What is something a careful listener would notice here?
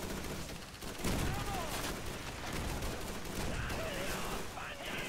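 Gunshots crack in short bursts nearby.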